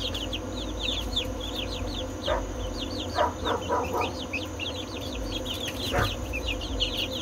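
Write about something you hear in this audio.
Many chicks peep and cheep constantly, close by.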